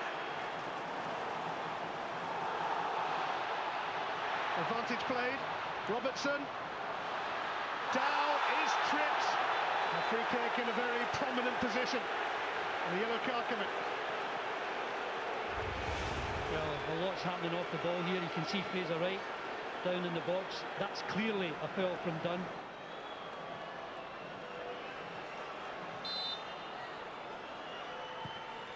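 A large stadium crowd roars and chants loudly.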